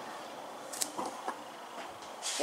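A cloth rustles.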